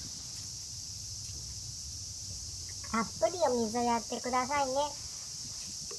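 Water from a watering can splashes onto soil.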